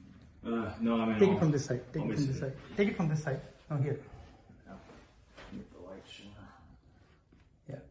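Footsteps pad softly on carpet.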